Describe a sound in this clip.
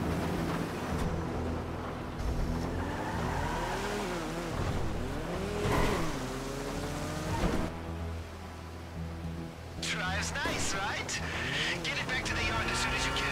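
A car engine revs and roars as the car speeds off.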